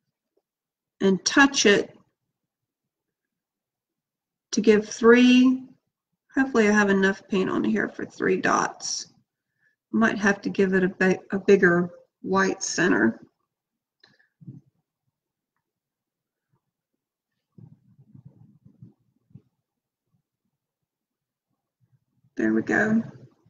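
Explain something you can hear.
A woman talks calmly close by, in short bursts with pauses.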